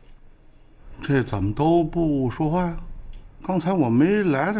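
A middle-aged man speaks loudly and with animation close by.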